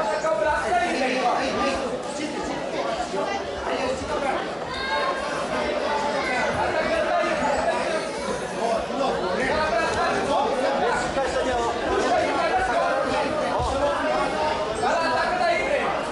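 A crowd of children and adults chatters and calls out in an echoing hall.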